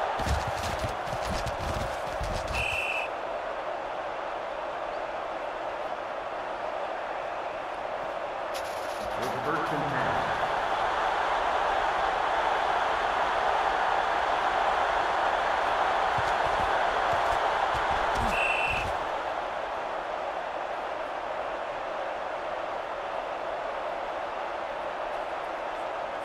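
A large stadium crowd roars steadily, swelling louder for a while before settling again.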